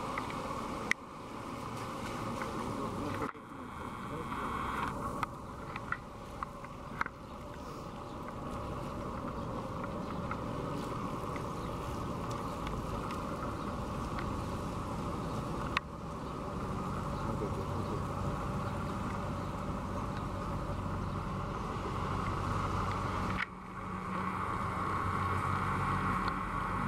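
Cars drive slowly past on a wet road, tyres hissing.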